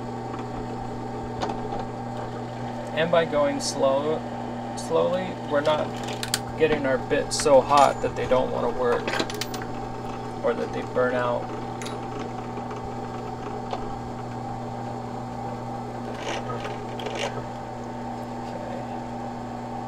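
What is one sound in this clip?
A drill motor hums steadily.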